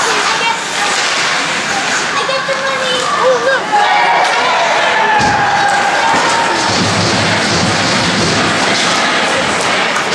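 Hockey sticks clatter against each other and the ice.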